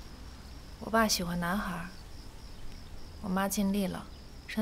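A young woman speaks softly and sadly close by.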